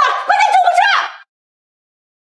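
A young woman shouts in alarm, close by.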